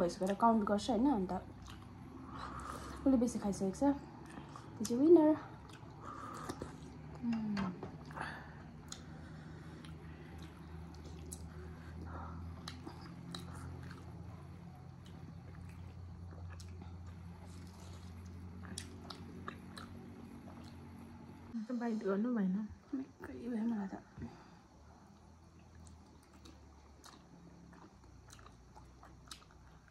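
Soft wet chewing and smacking sounds come up close.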